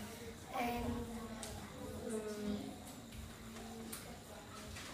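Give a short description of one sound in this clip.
A young boy speaks slowly and hesitantly, close by.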